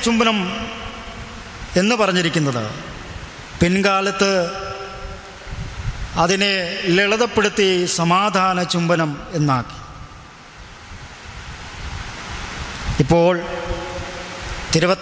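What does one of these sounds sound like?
A young man sings close into a microphone.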